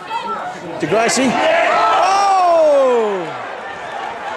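A small crowd cheers and shouts.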